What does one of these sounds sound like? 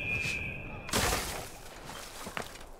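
A body lands heavily with a rustling thud in a pile of hay.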